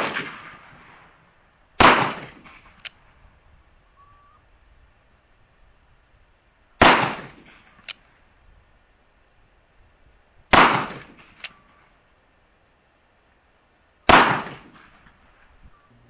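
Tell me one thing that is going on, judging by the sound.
A pistol fires single loud shots, each echoing across open ground.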